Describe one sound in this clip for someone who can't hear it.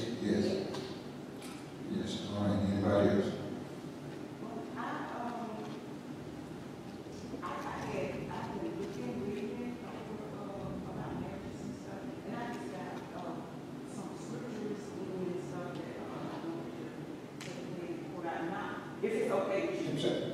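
A man preaches through a microphone and loudspeakers in a large echoing hall.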